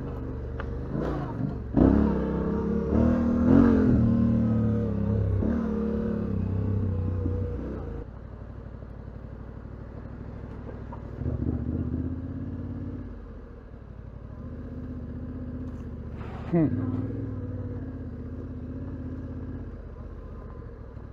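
A motorcycle engine rumbles and revs up and down.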